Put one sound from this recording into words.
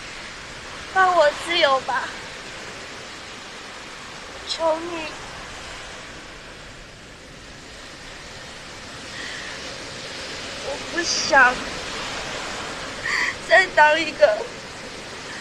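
A young woman speaks tearfully, close by, in short broken phrases.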